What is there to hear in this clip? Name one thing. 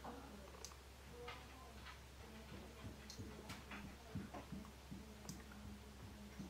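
A mascara wand brushes against eyelashes with soft, close-up clicks and crackles.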